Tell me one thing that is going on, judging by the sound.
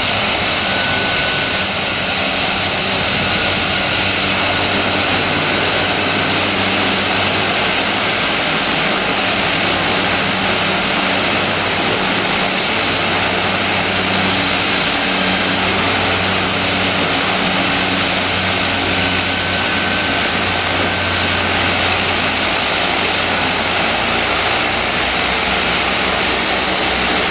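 A propeller plane's engine idles loudly and steadily with a high whine.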